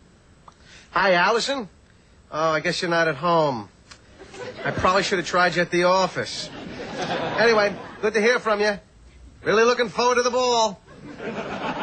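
A middle-aged man talks on a phone with animation, close by.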